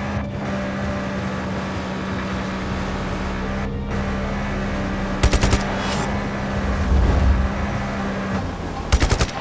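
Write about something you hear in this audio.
A jet ski engine hums steadily while skimming over water.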